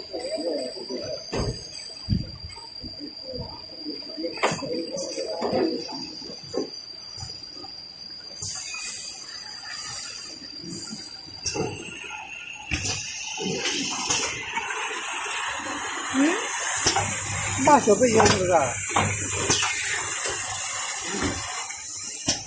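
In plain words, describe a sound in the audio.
Factory machines run with a steady whirring hum.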